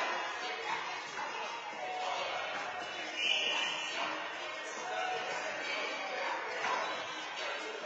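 A handball slaps against a court wall in an echoing court.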